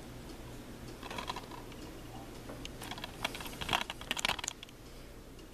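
A plastic disc case rattles and clicks as a hand handles it.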